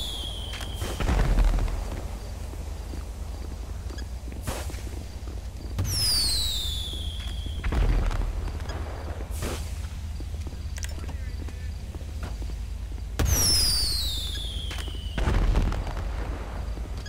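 Fireworks burst with loud booming bangs.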